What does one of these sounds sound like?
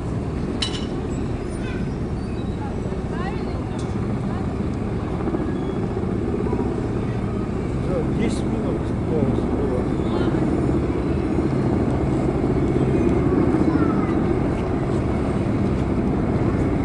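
A crowd murmurs nearby outdoors.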